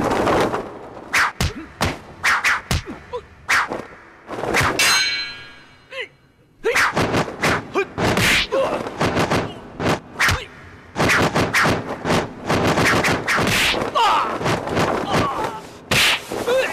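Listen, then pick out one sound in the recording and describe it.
Fists and blows thump and whoosh in a fight.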